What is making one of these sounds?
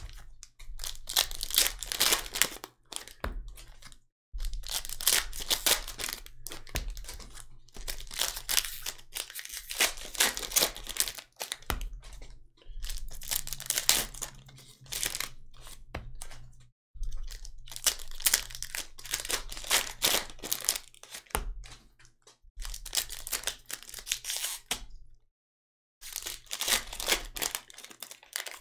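Foil wrappers crinkle and tear as packs are ripped open.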